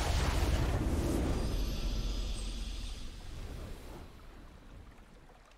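A triumphant game fanfare plays and slowly fades.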